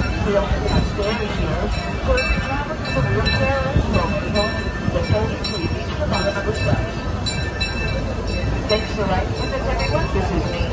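A large outdoor crowd chatters in a steady murmur.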